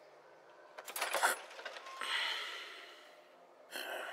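A door handle clicks and a heavy door creaks open.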